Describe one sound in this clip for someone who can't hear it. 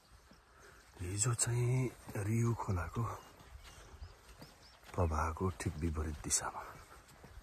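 A middle-aged man speaks calmly, close up.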